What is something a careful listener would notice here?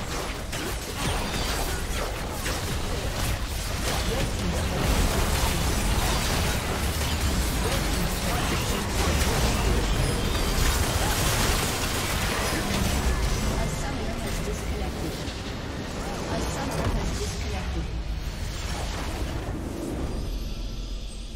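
Magic blasts crackle and boom in a fierce battle.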